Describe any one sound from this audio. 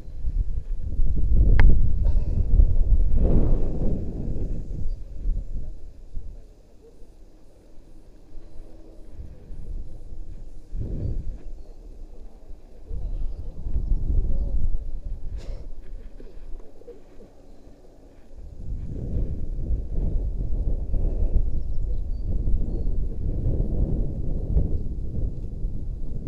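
Wind rumbles and buffets in gusts outdoors.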